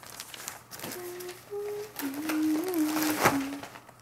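Paper rustles as a large sheet is handled and turned.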